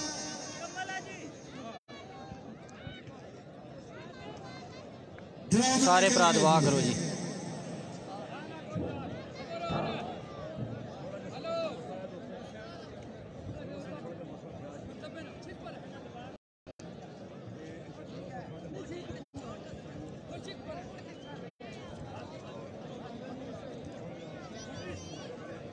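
A crowd of men chatter and call out outdoors.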